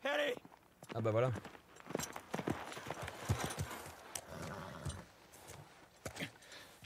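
Horse hooves clop on the ground as a horse walks closer.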